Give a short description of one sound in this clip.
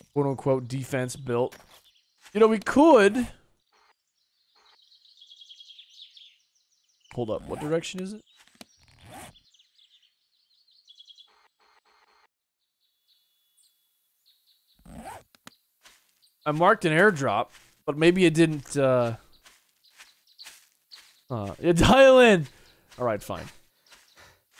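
A young man talks with animation into a close microphone, pausing often.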